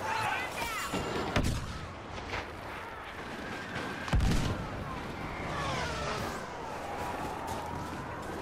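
Leaves rustle as someone pushes through dense plants.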